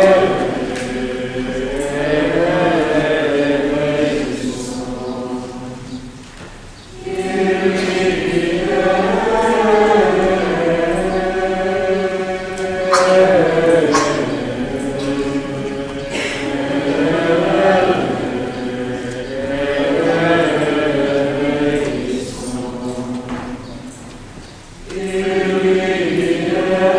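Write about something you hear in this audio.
Men sing a slow chant together in a large echoing hall.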